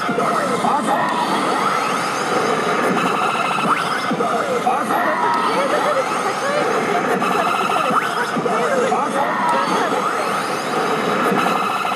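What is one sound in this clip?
A slot machine plays loud electronic music and sound effects.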